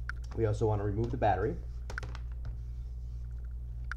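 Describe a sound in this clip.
A laptop is set down on a wooden desk with a soft knock.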